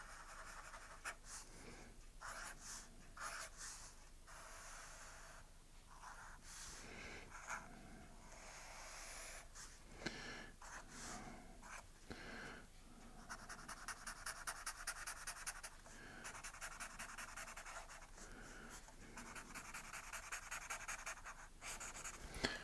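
A felt-tip marker squeaks and scratches across paper in short strokes.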